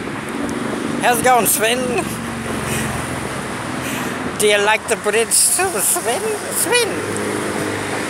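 A middle-aged man speaks cheerfully close by.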